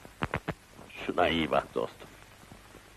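A second man speaks calmly in reply.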